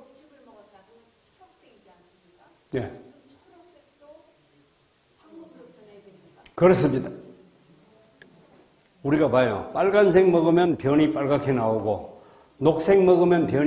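A man speaks calmly into a microphone over loudspeakers in an echoing hall.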